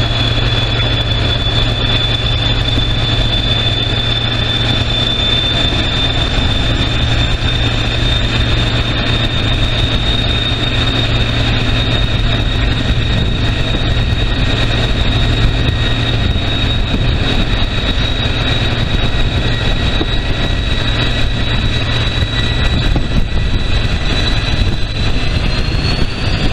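Wind rushes past the open window of a moving train.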